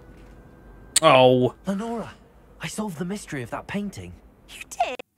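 A young man speaks calmly and clearly.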